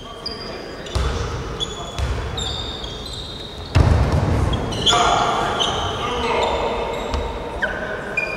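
A basketball bounces with dull thumps on a wooden floor.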